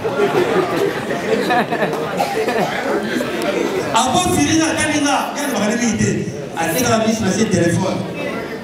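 A young man speaks with animation into a microphone, amplified through loudspeakers.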